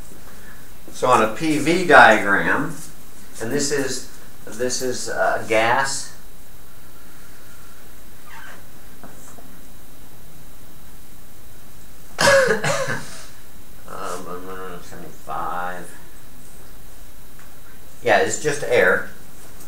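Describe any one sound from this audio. An elderly man speaks calmly, lecturing.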